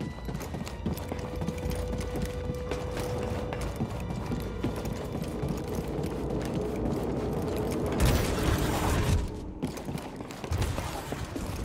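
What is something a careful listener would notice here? Footsteps run quickly across a metal floor.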